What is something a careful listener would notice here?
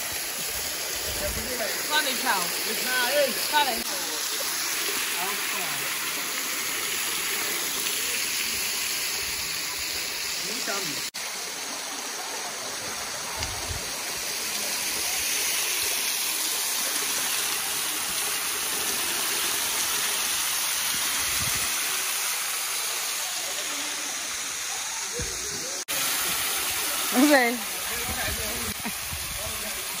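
A waterfall splashes steadily onto rocks.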